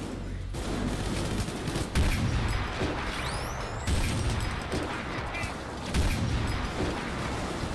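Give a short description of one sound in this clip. Gunshots boom in quick bursts.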